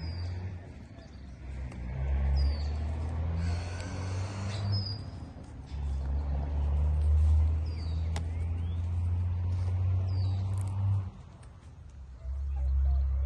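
A bull's hooves thud softly on dirt as it walks.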